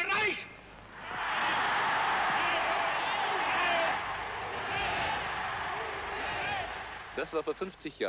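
A large crowd roars and cheers loudly.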